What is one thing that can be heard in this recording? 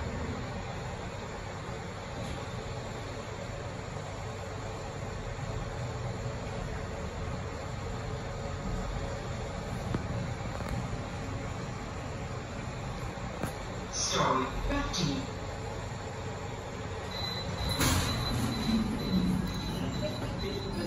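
A lift hums and rumbles steadily as it travels.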